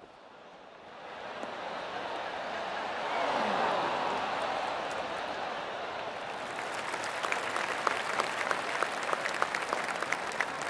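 A crowd cheers and roars.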